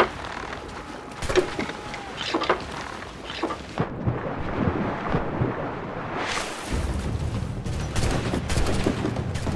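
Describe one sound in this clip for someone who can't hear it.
Water splashes and churns as a swimmer moves through waves.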